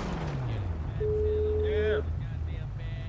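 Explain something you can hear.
A phone call tone beeps.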